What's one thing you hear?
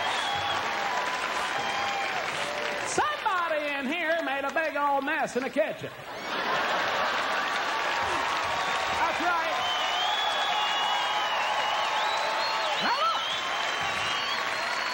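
A large audience laughs and applauds in a big hall.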